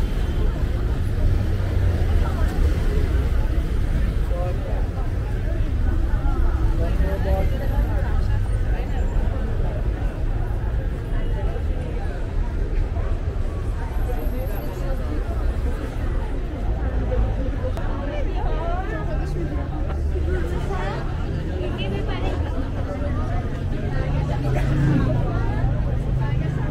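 Footsteps tread on pavement nearby.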